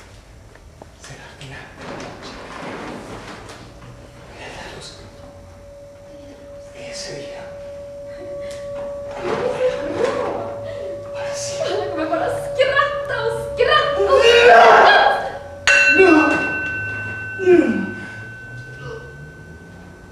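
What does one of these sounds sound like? A man cries out in anguish in an echoing hall.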